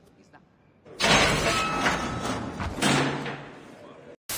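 A heavy iron gate creaks and clangs open.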